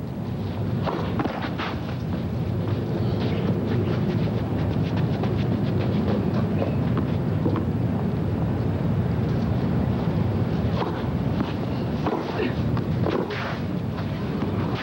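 A large crowd murmurs steadily in a wide open space.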